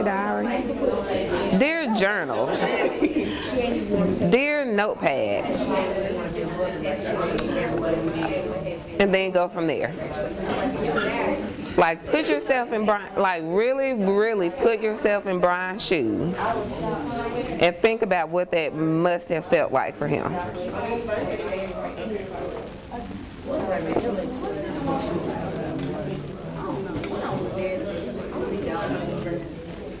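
A woman speaks calmly and nearby.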